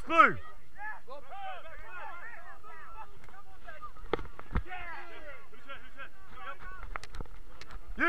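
Other players call out in the distance.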